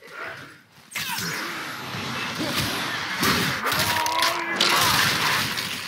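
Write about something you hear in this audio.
Heavy blows land with loud metallic clangs.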